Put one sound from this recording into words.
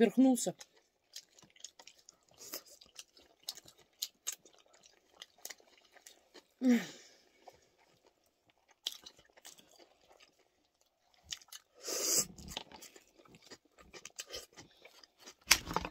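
A woman chews food with soft, wet mouth sounds.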